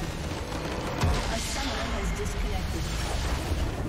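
A video game explosion booms.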